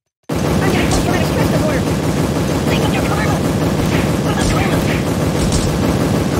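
Small explosions pop and bang.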